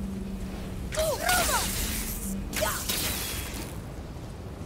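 Magic crackles and sizzles sharply.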